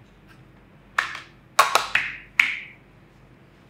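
Cards slap softly onto a table.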